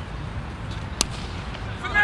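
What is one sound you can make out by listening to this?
A cricket bat knocks a ball with a sharp crack.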